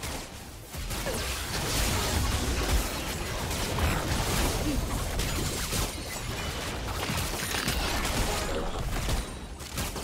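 Video game spell blasts and hits crackle and clash during a battle.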